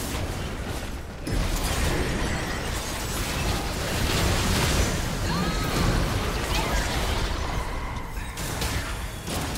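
Magic blasts and explosions crackle in a busy fight.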